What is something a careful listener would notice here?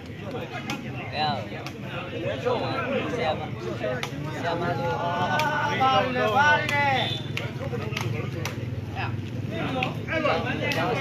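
A large outdoor crowd of men and boys shouts and cheers excitedly.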